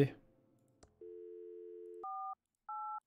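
A phone dial tone hums steadily.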